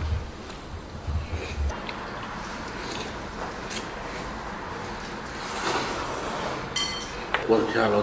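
A man slurps noodles noisily.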